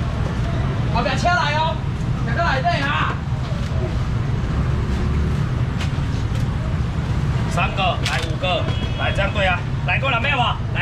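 Men call out loudly nearby.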